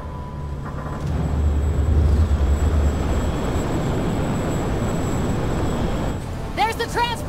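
A spacecraft engine rumbles deeply.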